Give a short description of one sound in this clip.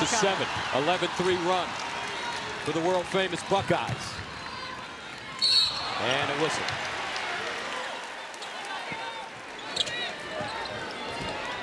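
A large indoor crowd murmurs and cheers in an echoing arena.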